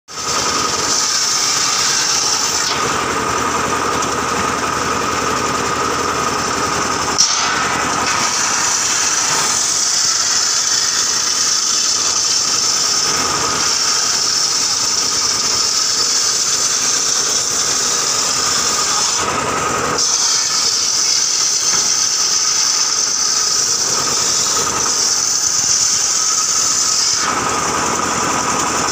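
A motor drones steadily, driving a saw.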